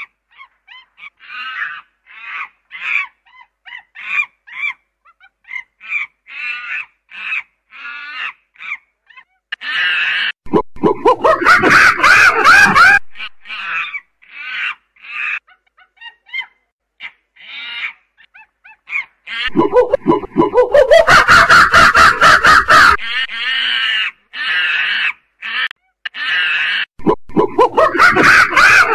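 A chimpanzee hoots and screams loudly nearby in rising bursts.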